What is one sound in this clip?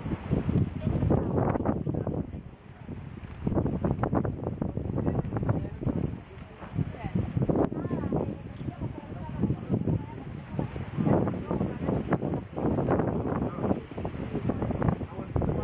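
Adult men and women talk nearby.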